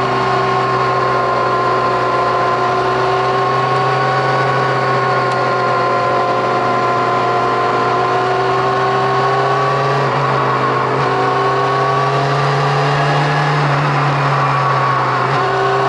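A motorcycle engine roars steadily at high revs close by, its pitch rising and falling slightly.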